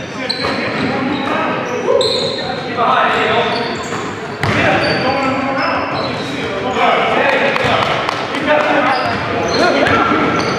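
Sneakers squeak sharply on a wooden floor in a large echoing gym.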